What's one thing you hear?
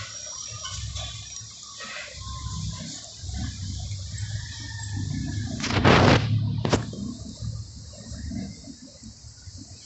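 A dog eats noisily from a plastic bowl, crunching and licking.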